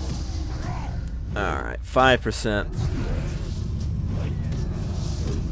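Magic spell effects whoosh and crackle during a fight.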